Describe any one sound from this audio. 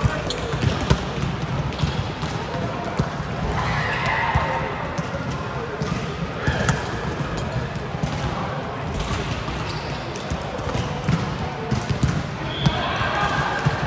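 Young women call out and chatter nearby in an echoing hall.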